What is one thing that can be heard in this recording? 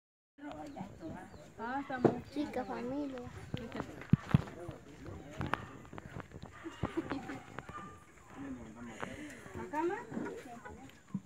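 Children and women chatter nearby in a lively group.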